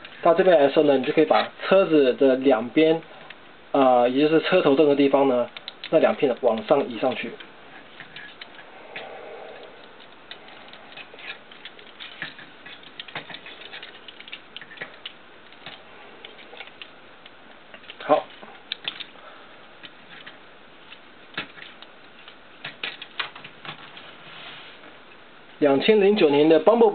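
Plastic toy parts click and snap as they are moved.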